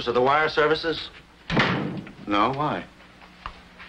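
A middle-aged man speaks tensely, close by.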